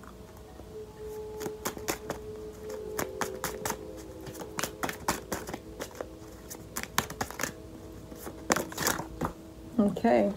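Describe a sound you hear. Cards tap and rustle in someone's hands.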